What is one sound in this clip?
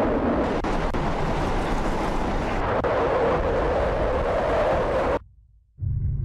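Strong wind roars and rushes.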